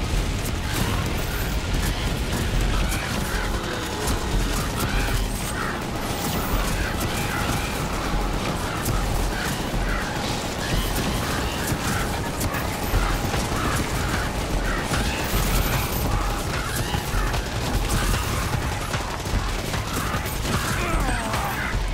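Rapid gunfire rattles without pause.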